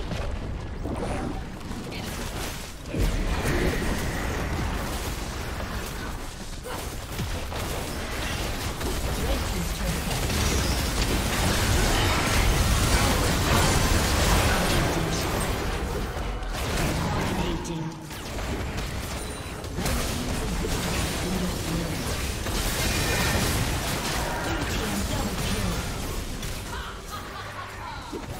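Game spell effects blast and crackle in a busy battle.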